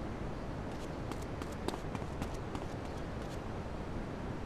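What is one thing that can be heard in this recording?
Footsteps run quickly across wooden boards.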